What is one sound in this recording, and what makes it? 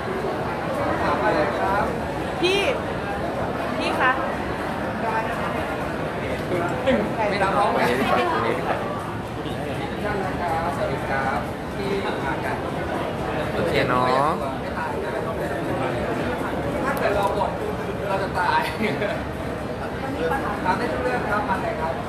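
A crowd of people talk and call out all at once, close by.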